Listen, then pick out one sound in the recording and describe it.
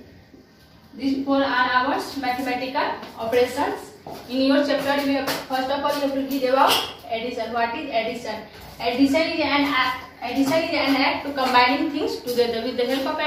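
A young woman speaks clearly and calmly, close by.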